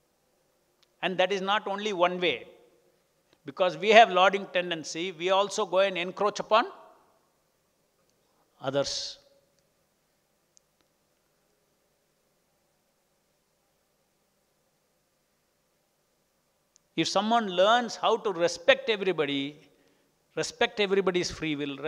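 An elderly man speaks calmly into a microphone, with long pauses.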